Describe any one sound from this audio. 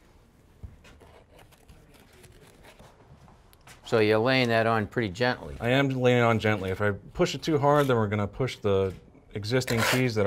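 A trowel smears plaster onto a wall.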